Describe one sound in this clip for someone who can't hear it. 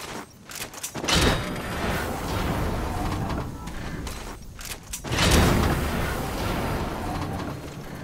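A cargo container whooshes up into the air.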